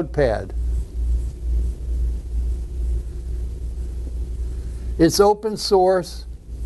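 An elderly man speaks calmly, lecturing.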